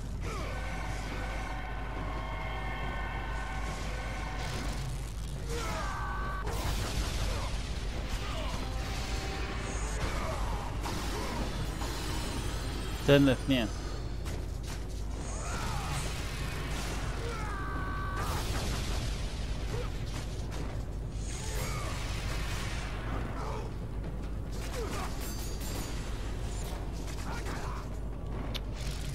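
Chained blades whoosh through the air in rapid swings.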